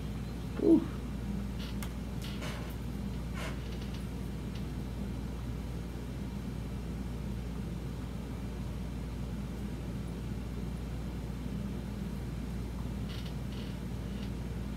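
Fingers rustle softly through hair.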